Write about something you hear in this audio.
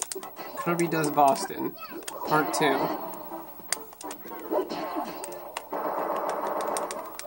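Video game sound effects of punches and impacts play in quick bursts.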